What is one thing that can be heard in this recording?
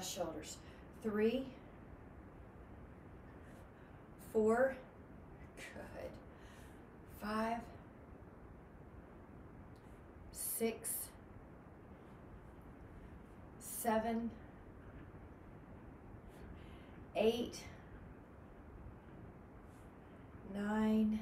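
A young woman speaks short words in bursts, close by.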